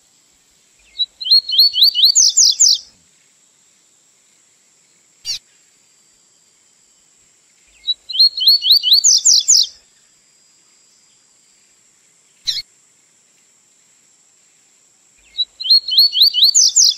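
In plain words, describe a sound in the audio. A small songbird sings loud, rapid bursts of high chirping trills.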